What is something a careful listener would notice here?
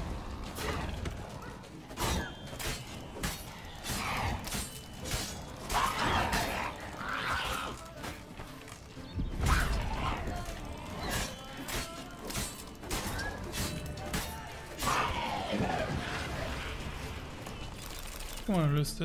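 Swords clash and strike a monster in quick, sharp blows.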